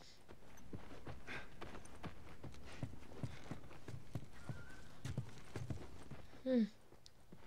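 Footsteps tread on a wooden floor indoors.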